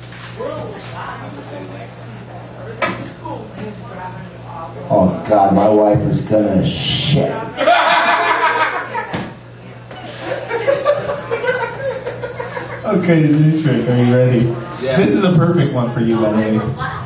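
A man speaks loudly into a microphone, heard through a loudspeaker in an echoing room.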